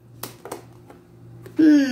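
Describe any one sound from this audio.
Playing cards riffle and flutter as a deck is shuffled by hand.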